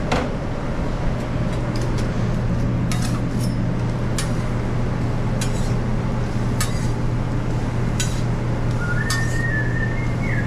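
Pancake batter sizzles softly on a griddle.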